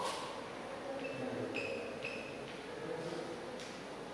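Chalk squeaks and taps on a board.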